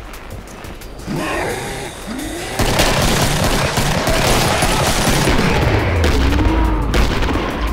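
Monsters growl and moan.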